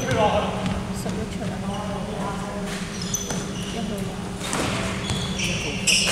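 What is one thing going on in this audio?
Young men shout and call out to each other across the hall.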